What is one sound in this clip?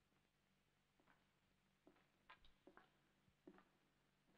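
Footsteps echo on a hard floor in a large hall.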